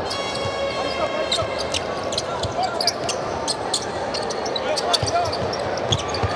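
A crowd murmurs throughout a large echoing arena.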